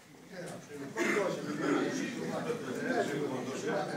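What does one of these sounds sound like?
A crowd of older men murmurs and talks over one another.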